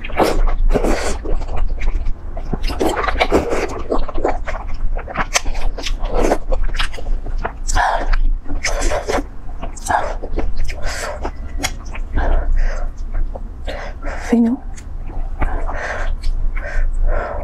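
A young woman slurps noodles loudly close to a microphone.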